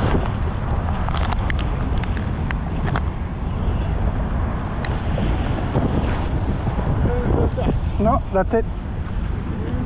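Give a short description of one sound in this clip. Small waves splash against a stone wall.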